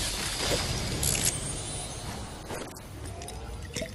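A treasure chest creaks open with a sparkling chime.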